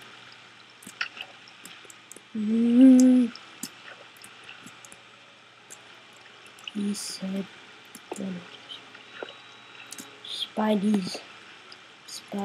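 Water flows and trickles steadily nearby.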